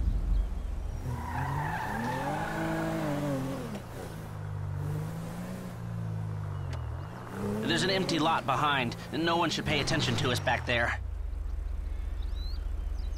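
A car engine revs up and down as the car drives.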